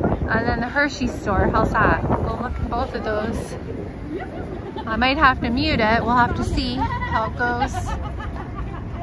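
Young women chat nearby as they walk.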